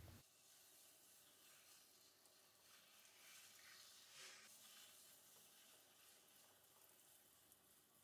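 Wet clay squishes and rubs under hands on a spinning potter's wheel.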